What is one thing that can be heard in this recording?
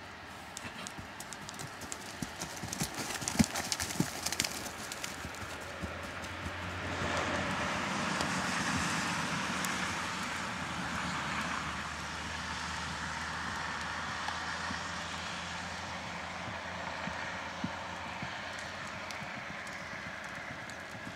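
A horse's hooves thud on soft ground.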